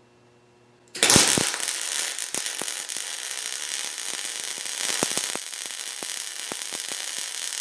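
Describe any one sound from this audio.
A welding arc crackles and sizzles steadily.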